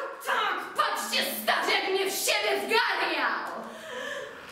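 A young woman shouts and screams loudly.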